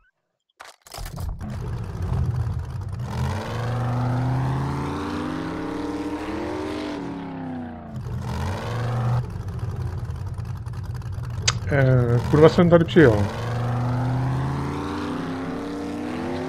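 A truck engine rumbles and revs as the vehicle drives.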